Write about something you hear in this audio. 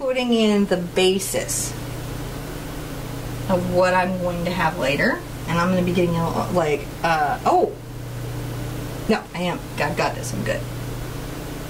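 A middle-aged woman talks with animation, close to a microphone.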